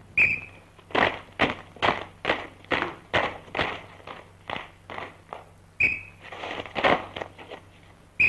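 Many feet stamp in a marching rhythm.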